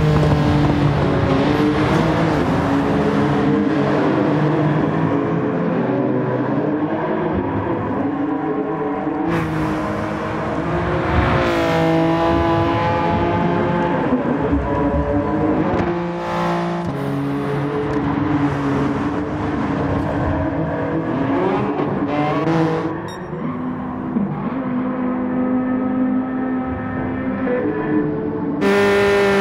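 A racing car engine revs high and drops as gears shift.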